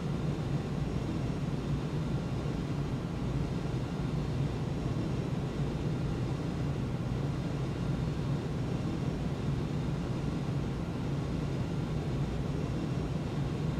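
A jet airliner's engines roar steadily.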